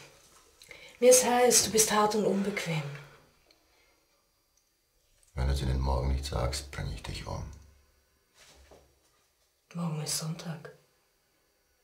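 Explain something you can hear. A woman speaks softly and close by.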